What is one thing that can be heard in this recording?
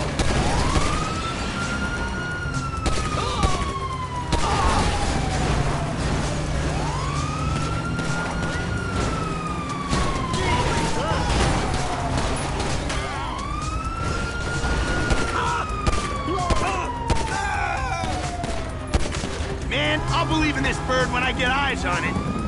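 A police siren wails, rising and falling over and over.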